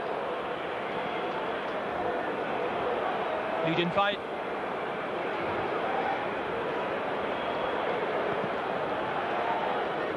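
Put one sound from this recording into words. A large crowd murmurs and cheers steadily outdoors.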